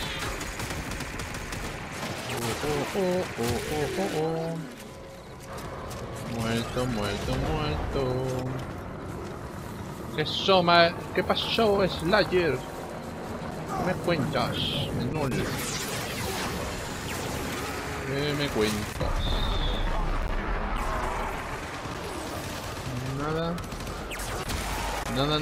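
Gunfire from a video game crackles in rapid bursts.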